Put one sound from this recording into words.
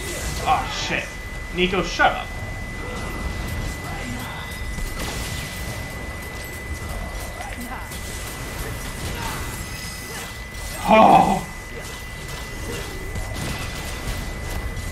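Game sound effects of magic blasts and explosions play throughout.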